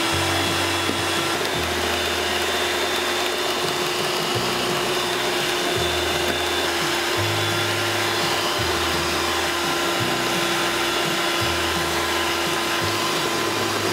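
An electric hand mixer whirs steadily.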